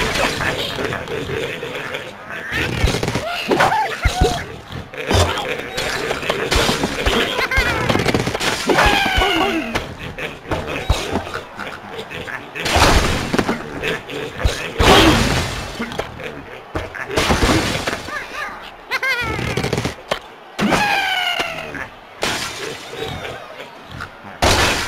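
A bird character squawks as it flies through the air.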